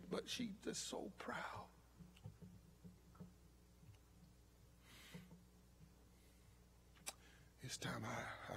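A man speaks slowly and forcefully into a microphone, with long pauses.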